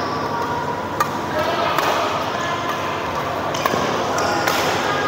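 Rackets strike a shuttlecock with sharp pops, heard in a large echoing hall.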